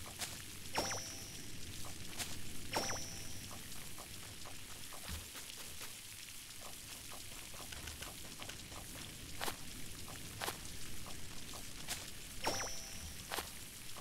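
Short electronic chimes ring out.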